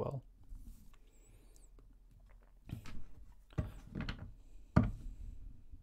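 Cards slide and tap on a table.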